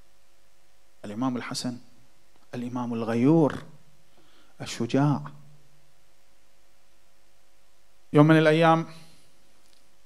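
A man speaks through a microphone in short, emphatic phrases with pauses between them.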